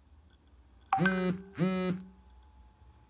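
A phone notification chimes.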